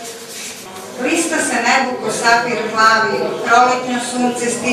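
A middle-aged woman speaks calmly into a microphone, heard through a loudspeaker.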